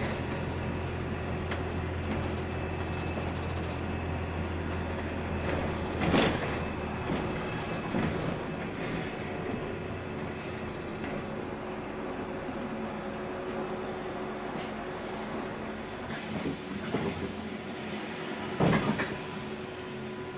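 A bus engine hums steadily from inside the bus while it drives along.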